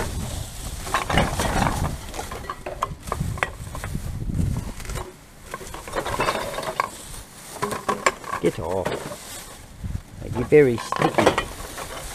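Plastic bottles clatter and crunch.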